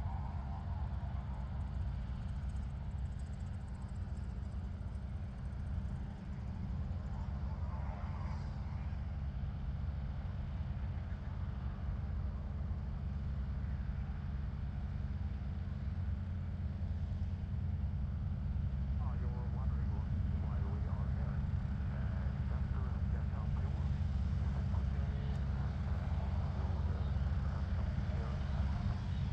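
A propeller plane's engine drones steadily as it taxis closer, growing louder.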